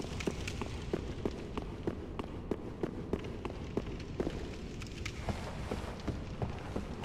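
Armoured footsteps clank on stone in a steady walking rhythm.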